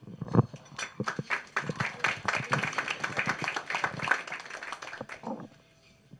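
A woman speaks cheerfully into a microphone, heard through a loudspeaker.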